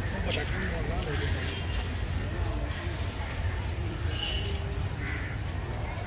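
Two young girls chat quietly nearby.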